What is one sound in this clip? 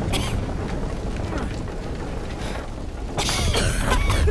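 Fire crackles as flames burn through wood.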